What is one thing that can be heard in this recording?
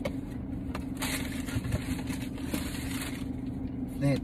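A cardboard box rustles.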